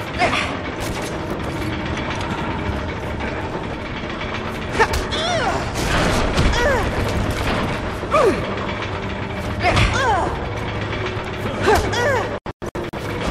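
Ropes creak and groan under strain.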